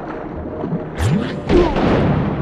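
A sharp hit lands on a spiky creature.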